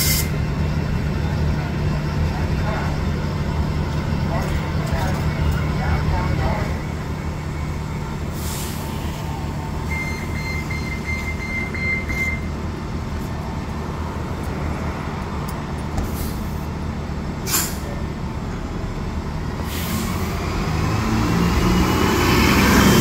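A bus engine idles nearby with a low steady rumble.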